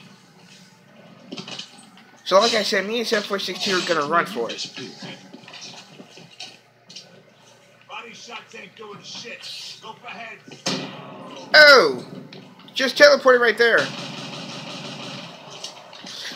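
Video game sound effects play from a television speaker.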